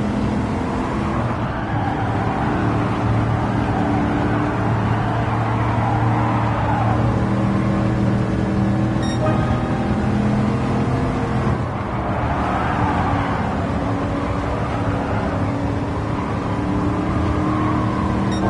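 A racing car engine roars steadily, rising and falling in pitch as gears change.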